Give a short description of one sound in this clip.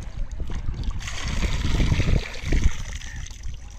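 Water pours out of a bowl and splashes into shallow water.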